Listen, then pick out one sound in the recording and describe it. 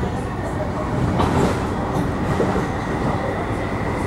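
A passing train roars by close alongside.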